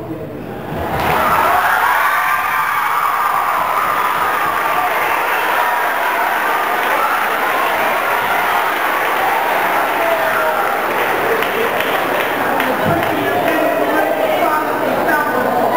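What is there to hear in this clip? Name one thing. An audience cheers and applauds loudly.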